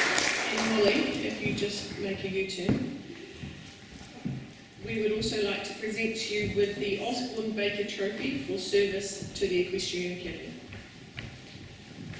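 A woman speaks calmly into a microphone, heard through loudspeakers in a large hall.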